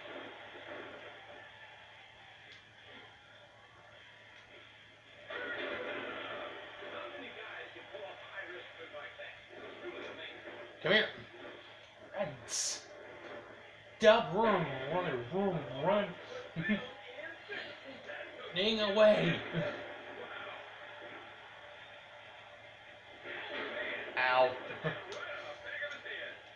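Wrestling video game sounds play from a television speaker.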